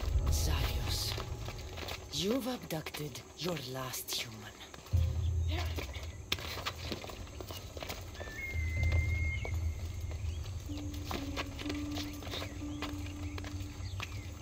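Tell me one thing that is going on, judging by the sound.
Hands and boots scrape and knock while climbing a stone wall.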